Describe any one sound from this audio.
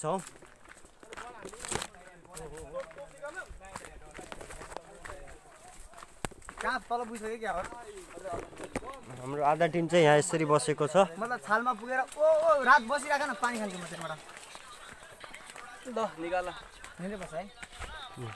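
A teenage boy talks close by with animation.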